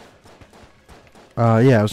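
Small electronic gunshots fire in quick bursts.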